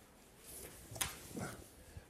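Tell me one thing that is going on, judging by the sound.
Paper rustles under a hand.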